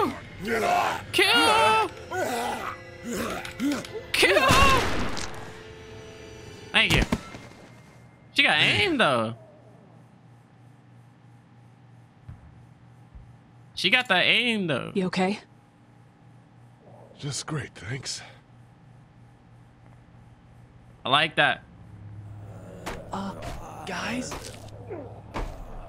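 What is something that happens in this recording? A young man talks and reacts with animation, close to a headset microphone.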